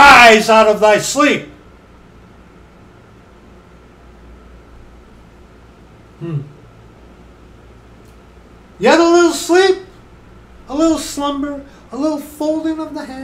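A middle-aged man speaks with animation close to a microphone, pausing at times.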